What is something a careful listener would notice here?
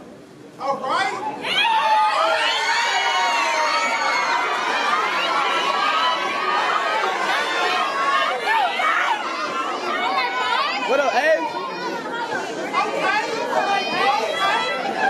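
Young women chant loudly together.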